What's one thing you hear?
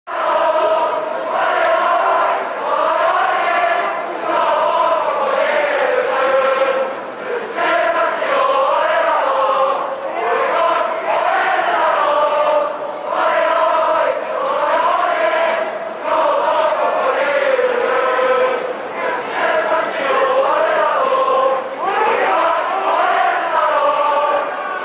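A large crowd of young people sings a chant together in unison, echoing across an open stadium.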